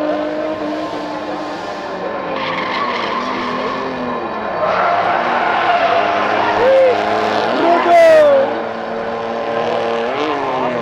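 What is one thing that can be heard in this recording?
Car engines rev and roar as cars drift around a track.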